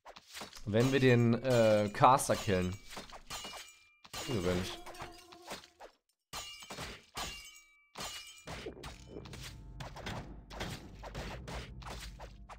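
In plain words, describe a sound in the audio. Weapons strike again and again in a fight.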